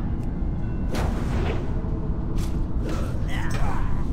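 Weapon blows strike with sharp hits.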